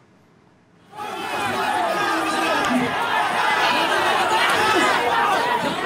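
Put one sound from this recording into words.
A crowd shouts and clamours outdoors.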